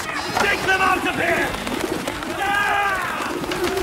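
Pigeons flap their wings.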